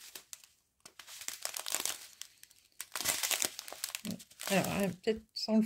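A plastic bag crinkles as hands handle it.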